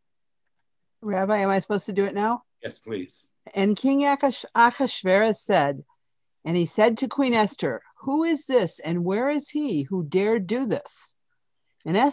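An elderly woman speaks with animation through an online call.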